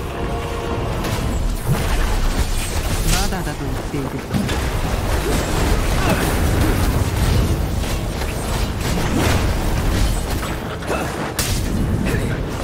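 Magic spells crackle and burst in a loud battle.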